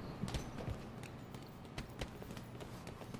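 Boxing gloves thud in quick sparring punches.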